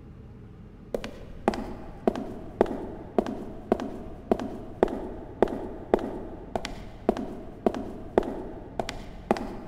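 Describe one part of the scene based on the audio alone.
Footsteps tap steadily across a hard stone floor.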